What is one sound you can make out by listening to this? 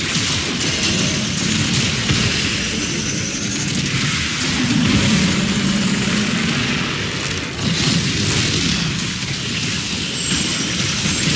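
Weapons fire rapidly in bursts.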